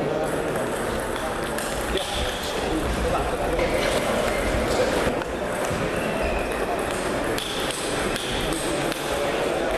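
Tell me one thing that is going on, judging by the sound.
A table tennis ball clicks back and forth on paddles and a table in an echoing hall.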